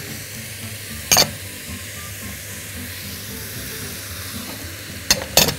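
Chopped vegetables tumble into a cooking pot.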